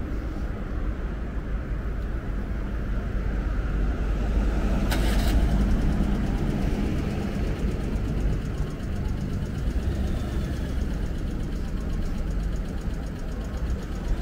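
Low traffic noise hums steadily outdoors.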